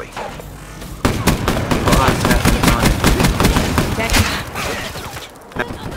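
Rapid gunshots crack in quick bursts.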